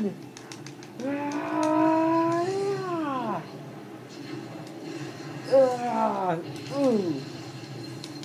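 A monster roars loudly through a television speaker, falling in pitch at the end.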